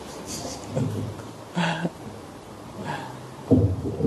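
An elderly man laughs into a microphone.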